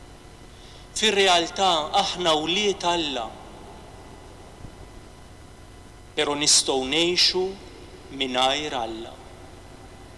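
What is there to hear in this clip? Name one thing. A man reads out slowly through a microphone.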